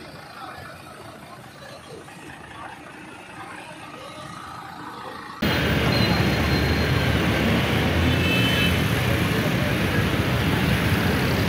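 Traffic hums and rumbles along a street nearby.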